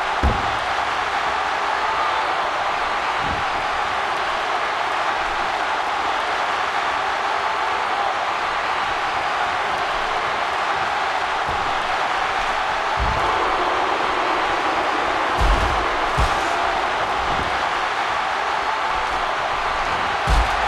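Heavy thuds of wrestlers slamming onto the mat and floor.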